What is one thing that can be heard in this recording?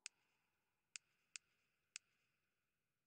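Short soft clicks tick a few times.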